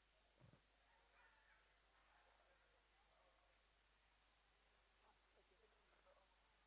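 Women murmur quietly nearby.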